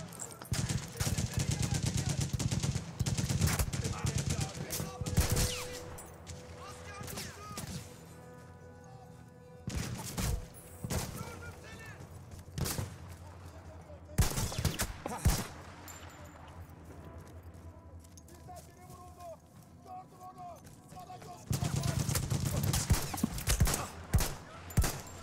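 Rifle shots crack with loud bangs.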